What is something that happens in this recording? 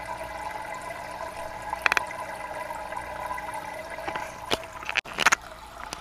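Water trickles and splashes from an aquarium filter.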